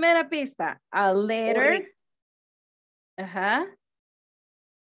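An older woman speaks with animation over an online call.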